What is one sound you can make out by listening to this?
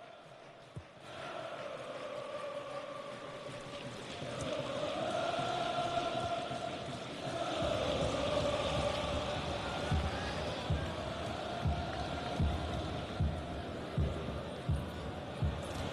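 A large stadium crowd roars and chants steadily outdoors.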